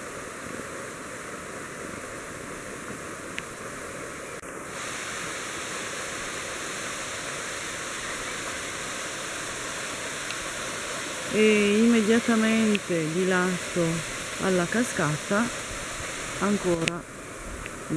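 A waterfall splashes steadily onto rocks.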